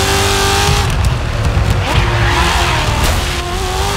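Tyres screech as a race car slides through a corner.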